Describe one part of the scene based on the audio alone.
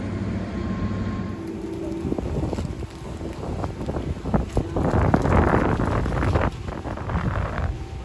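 A ship's engine rumbles low and steadily.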